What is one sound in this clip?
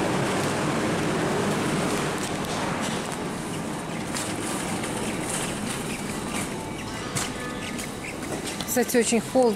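A shopping cart rattles as it rolls over a hard floor.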